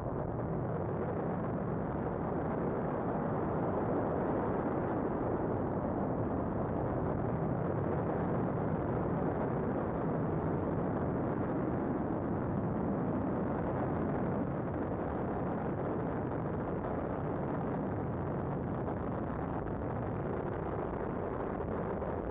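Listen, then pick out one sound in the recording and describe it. An airship's engines drone steadily.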